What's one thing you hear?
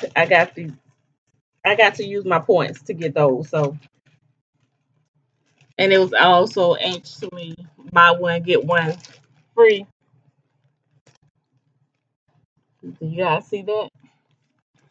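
A woman talks in a calm, chatty way, close to the microphone.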